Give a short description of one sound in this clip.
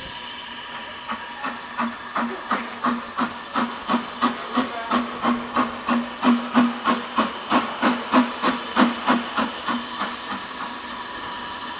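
A steam locomotive chuffs rhythmically as it pulls away, its exhaust beats growing loud and then fading.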